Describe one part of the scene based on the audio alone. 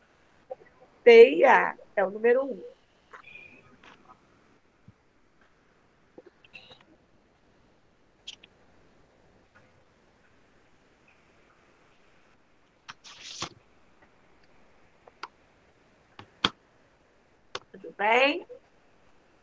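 A woman speaks calmly into an online call.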